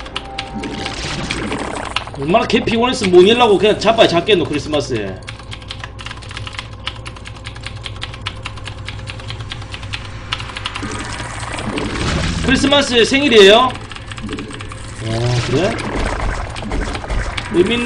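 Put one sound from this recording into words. Keys on a mechanical keyboard clatter in rapid typing.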